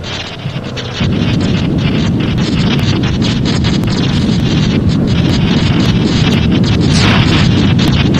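A deep whooshing rumble swirls loudly.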